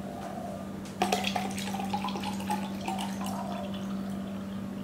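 Juice pours and splashes into a glass.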